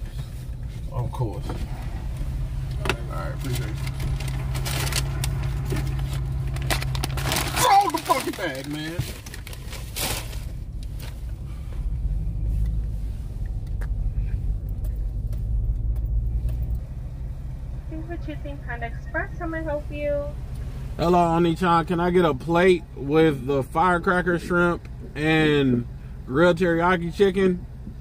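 A car engine hums steadily at a low pitch.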